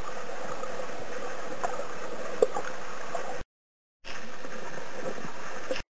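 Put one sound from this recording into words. A steady underwater hiss with faint crackling surrounds the listener.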